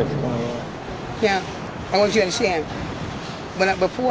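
An elderly woman speaks with emotion close to the microphone.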